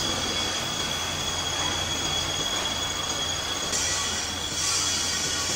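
A large lathe hums and whirs steadily as a metal shaft spins.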